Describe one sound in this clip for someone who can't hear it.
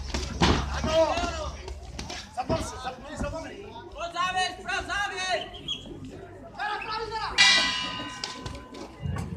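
Spectators shout and cheer loudly outdoors.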